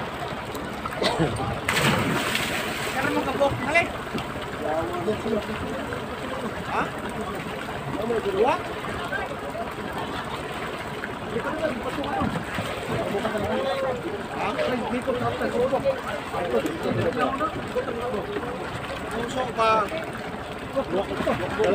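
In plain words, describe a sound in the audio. Several men talk casually nearby, outdoors.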